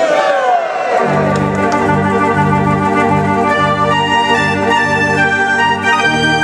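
A fairground organ plays a loud, bright tune.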